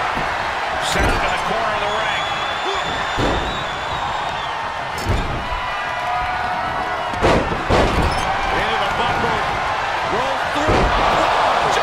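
Heavy bodies slam onto a wrestling ring mat with loud thuds.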